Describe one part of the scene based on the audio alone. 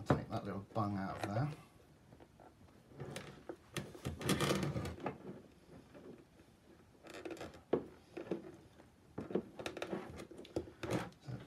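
Plastic tubing rustles and clicks as hands fit it.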